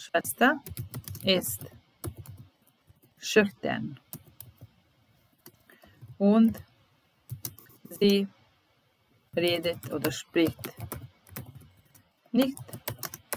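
A woman speaks slowly and calmly into a microphone, pausing between words.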